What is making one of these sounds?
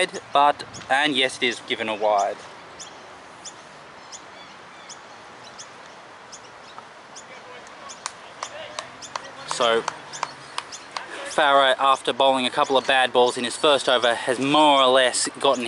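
Men talk and call out nearby, outdoors.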